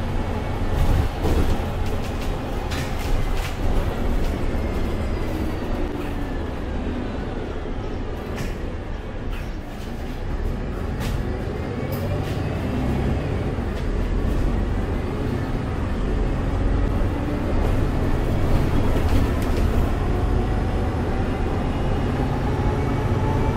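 A bus engine hums low and steady while driving.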